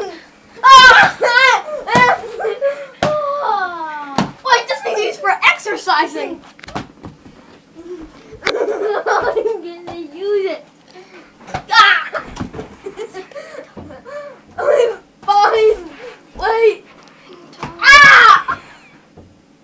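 Young children shout and squeal playfully close by.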